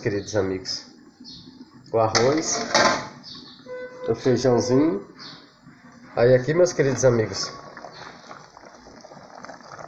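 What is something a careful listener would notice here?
A metal pot lid clinks against a pot.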